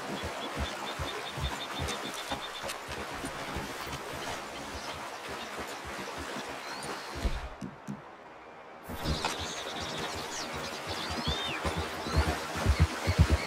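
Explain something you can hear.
A horse splashes as it wades through a shallow river.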